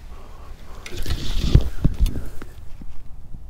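Footsteps crunch through dry grass close by.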